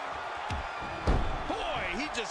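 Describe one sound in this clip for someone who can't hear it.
A heavy body thuds onto a wrestling ring mat.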